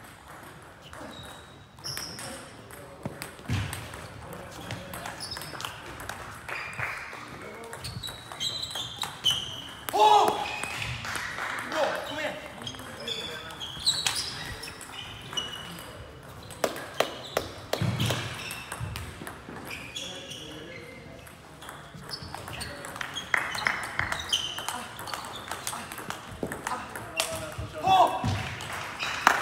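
A table tennis ball clicks back and forth across a table in a large echoing hall.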